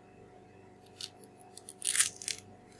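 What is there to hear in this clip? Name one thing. A banana peel rustles and snaps.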